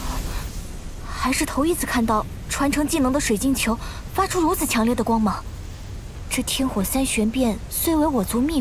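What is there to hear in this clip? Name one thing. A young man speaks calmly and clearly.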